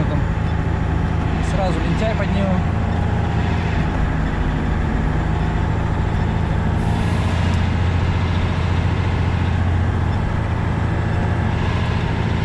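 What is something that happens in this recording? The cab rattles and creaks over a bumpy snowy road.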